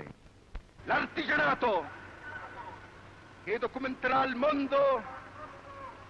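A man orates loudly in bursts, his voice echoing.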